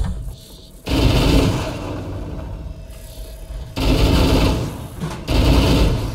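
A rifle fires rapid bursts of gunfire.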